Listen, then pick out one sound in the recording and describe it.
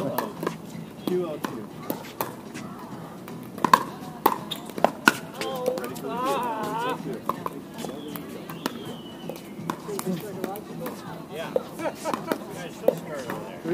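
Paddles pop sharply against a plastic ball, back and forth outdoors.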